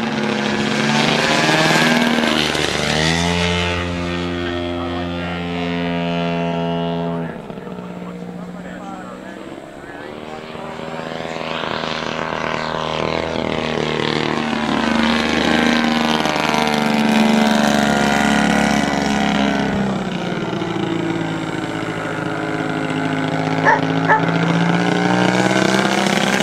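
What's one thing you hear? A model airplane engine buzzes loudly close by, rising and falling in pitch as it revs.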